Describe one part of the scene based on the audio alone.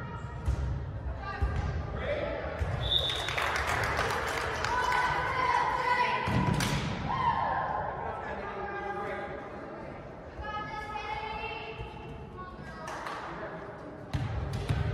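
Young women call out to each other in a large echoing gym.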